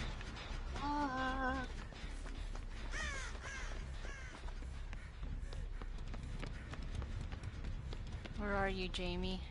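Footsteps run over hard ground.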